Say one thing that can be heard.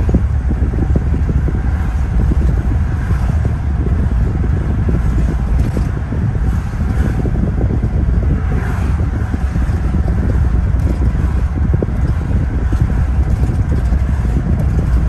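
Wind rushes past a car window.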